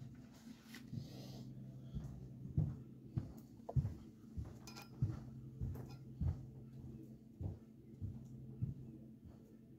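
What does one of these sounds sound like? Small knocks and taps sound on a metal surface.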